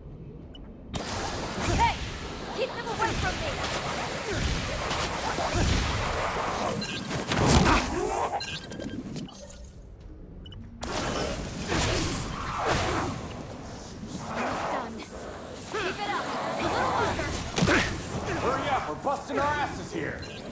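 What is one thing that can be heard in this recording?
Magic blasts whoosh and crackle in a game.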